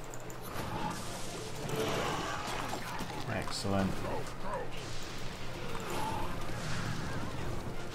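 Game spells crackle and whoosh during combat.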